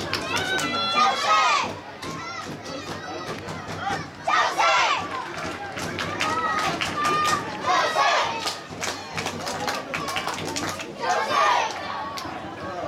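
A crowd of spectators murmurs and calls out in the distance.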